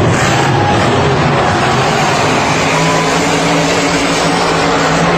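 A monster truck engine roars as the truck drives over dirt.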